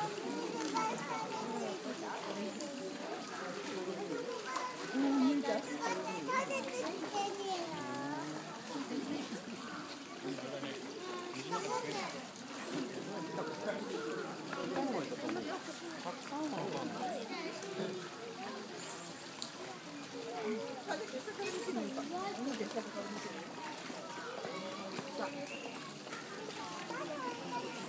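Water splashes as otters swim and climb out of a pool.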